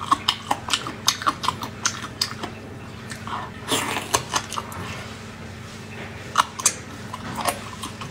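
A young woman chews and slurps wet, sticky meat close to a microphone.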